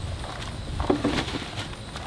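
Loose dirt drops into a plastic bin.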